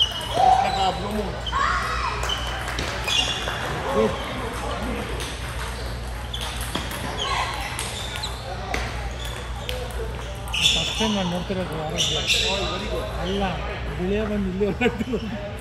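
Men talk casually nearby in a large room.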